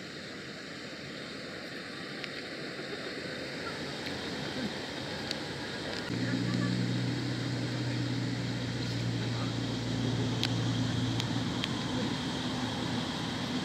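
Gibbons scramble and rustle through grass.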